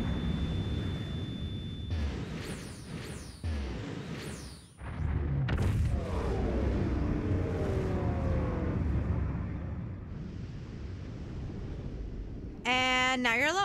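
A deep, roaring magical blast rumbles and swells, then fades away.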